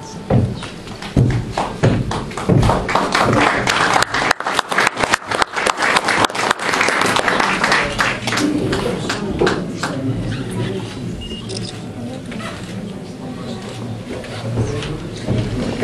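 A woman speaks calmly through a microphone in an echoing room.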